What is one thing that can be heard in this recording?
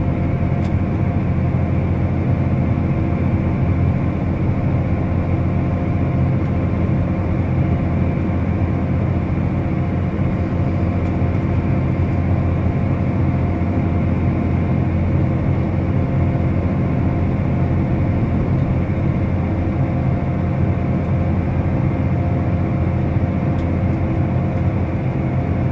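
A tractor engine hums low and steady from inside a closed cab.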